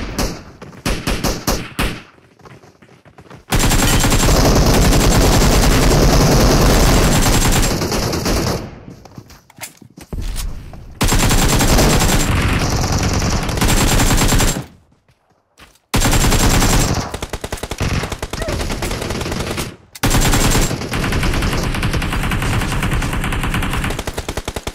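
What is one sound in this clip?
Gunfire from a game rattles in rapid bursts.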